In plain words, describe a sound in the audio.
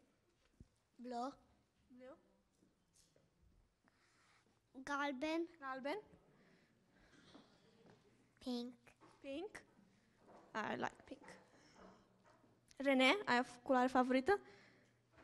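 A young woman speaks to children in a lively, sing-song voice, close by.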